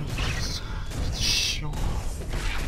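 A fiery blast bursts with a roar.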